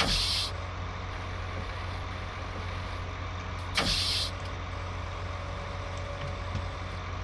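A heavy machine engine hums steadily.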